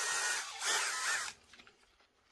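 A cordless drill whirs briefly.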